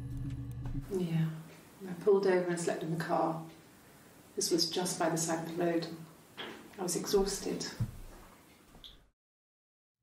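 A woman speaks calmly, heard through a recording.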